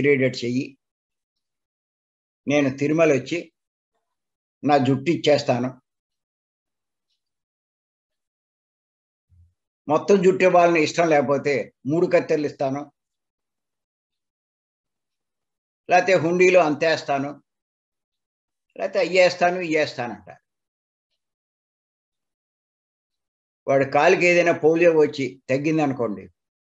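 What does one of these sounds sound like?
An elderly man speaks calmly and slowly in short phrases, heard through an online call.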